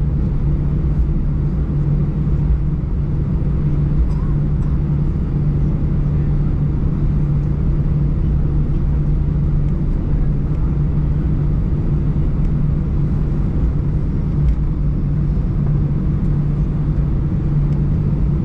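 A jet engine hums with a steady low drone inside an aircraft cabin.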